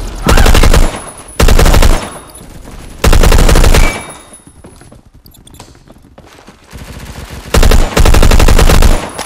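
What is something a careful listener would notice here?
Automatic gunfire rattles in loud rapid bursts.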